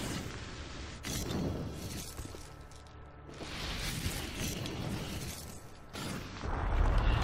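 Energy blasts crackle and burst.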